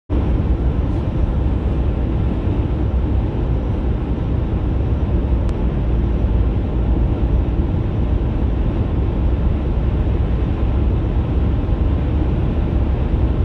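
A car's engine hums steadily, heard from inside the car.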